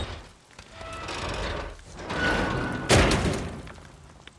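A heavy metal hatch creaks open.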